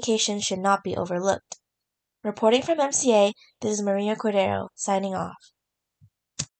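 A young woman speaks up close with animation.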